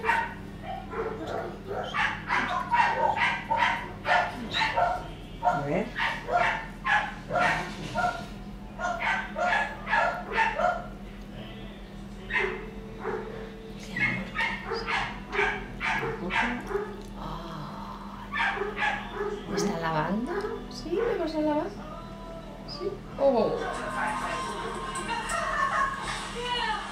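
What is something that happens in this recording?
A woman talks softly and affectionately, close by.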